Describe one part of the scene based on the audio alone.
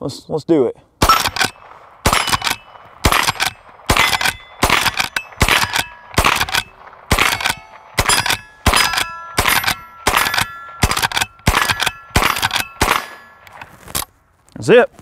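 A rifle fires shot after shot in quick succession, with sharp cracks ringing out.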